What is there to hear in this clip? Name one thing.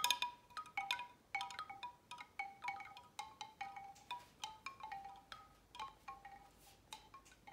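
Hollow wooden wind chimes clatter and knock together with soft, ringing tones.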